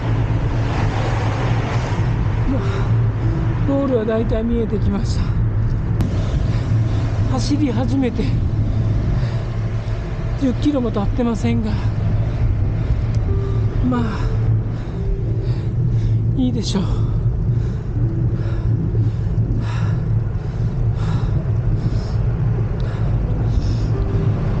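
Wind rumbles steadily against a microphone while riding outdoors.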